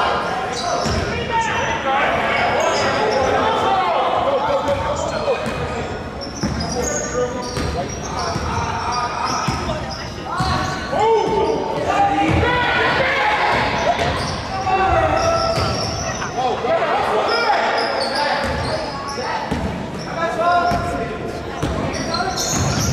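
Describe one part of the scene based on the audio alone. A ball bounces on a wooden court in a large echoing gym.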